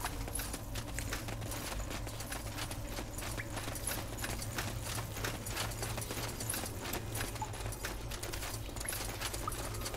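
Footsteps crunch on rough stone at a steady pace.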